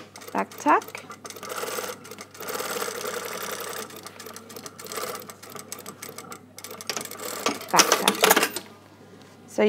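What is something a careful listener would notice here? A sewing machine runs, stitching through heavy fabric.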